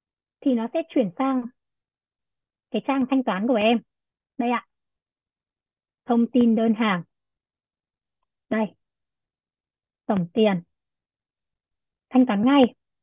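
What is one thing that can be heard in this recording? A young woman speaks calmly in short bursts with pauses, heard through a microphone.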